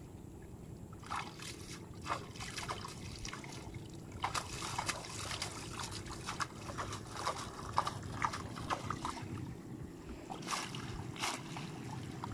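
Water splashes as a net is pulled through it.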